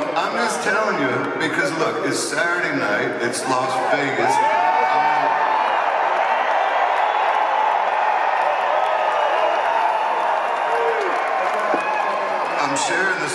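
A man sings loudly into a microphone, carried by loudspeakers through a large echoing hall.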